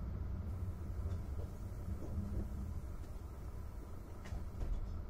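Wheels clack over rail joints.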